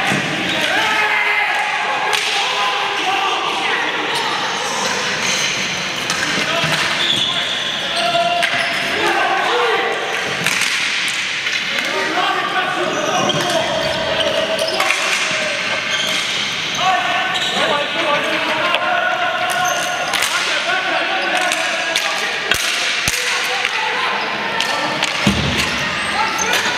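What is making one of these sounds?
Young players shout and call out to each other in a large echoing hall.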